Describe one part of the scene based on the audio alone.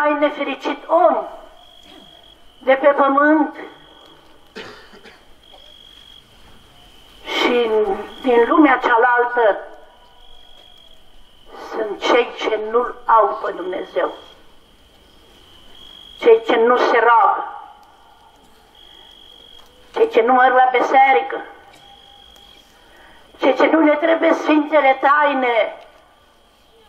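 A man chants loudly through a microphone in short phrases, pausing between them.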